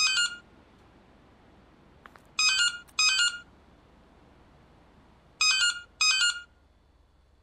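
A mobile phone rings with short electronic beeps.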